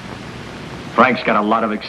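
A man speaks, close by.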